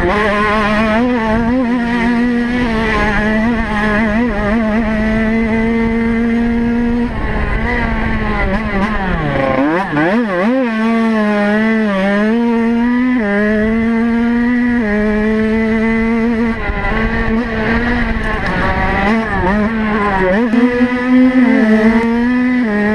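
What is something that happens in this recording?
A dirt bike engine roars close by, revving up and down through the gears.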